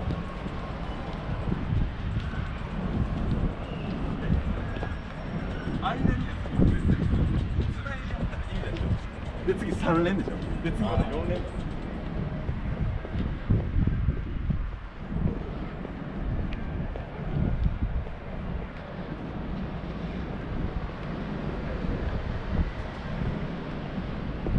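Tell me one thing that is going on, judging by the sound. Wind gusts rumble steadily outdoors.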